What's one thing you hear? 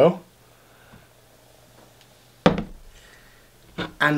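A plastic bottle knocks down onto a table.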